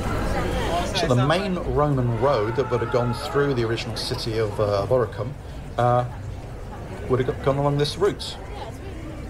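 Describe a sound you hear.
An elderly man talks calmly into a close microphone.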